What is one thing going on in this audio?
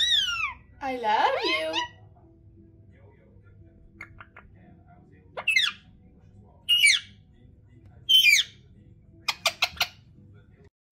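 A parrot squawks and chatters loudly close by.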